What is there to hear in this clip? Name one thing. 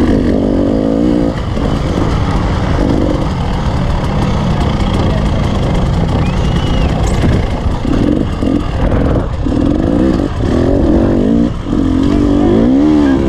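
Tyres crunch and skid over loose gravel.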